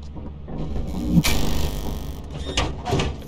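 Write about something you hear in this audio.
A heavy metal door grinds open with a loud rumble.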